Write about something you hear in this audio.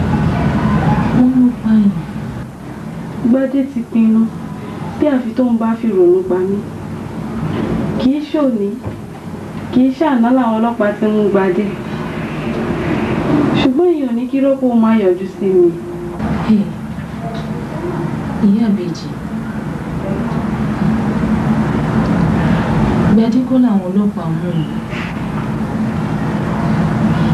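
An older woman speaks with animation close by.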